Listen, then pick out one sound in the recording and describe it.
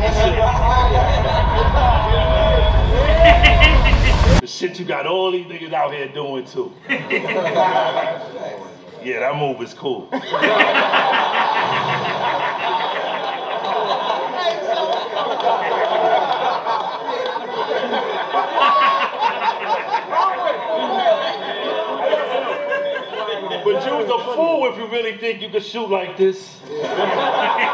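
A young man laughs and exclaims loudly with excitement, close by.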